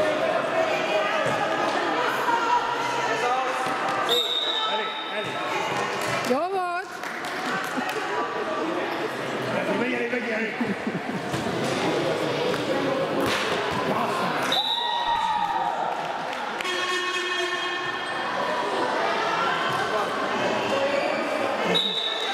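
Young girls shout and call out in a large echoing hall.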